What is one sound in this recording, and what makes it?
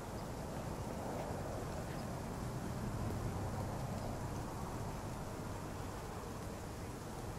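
Steady rain patters outdoors.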